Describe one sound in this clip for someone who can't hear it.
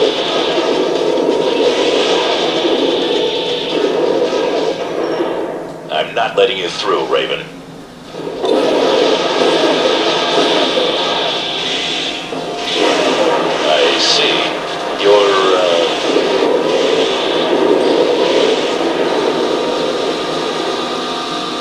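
A machine's thrusters roar steadily.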